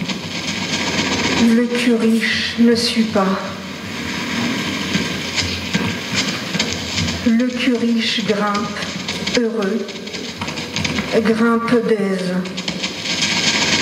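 An electric guitar plays a noisy, textured drone through an amplifier.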